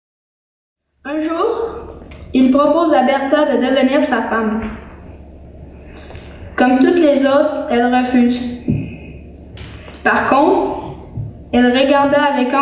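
A young woman speaks with expression.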